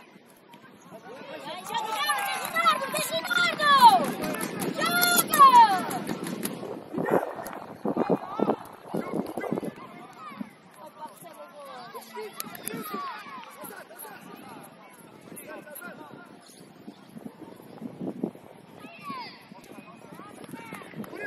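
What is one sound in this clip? Young children shout and call out across an open outdoor pitch.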